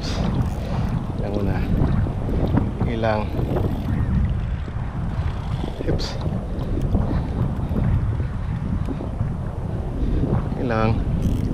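Waves lap and splash against a small boat.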